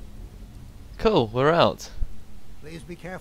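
A man speaks calmly and gravely.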